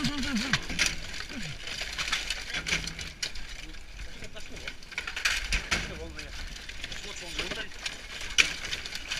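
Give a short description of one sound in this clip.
Dogs scrabble through rustling, crackling scrap.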